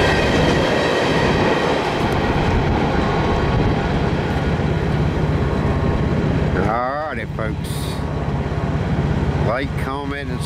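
A freight train rumbles along the tracks and fades into the distance.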